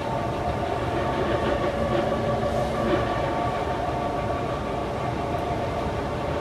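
A train rumbles and hums steadily along the track.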